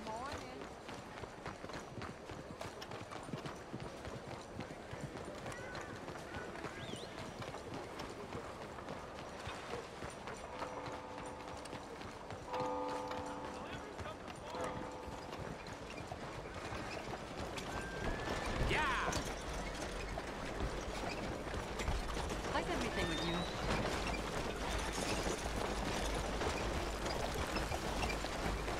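Footsteps run quickly on a muddy street.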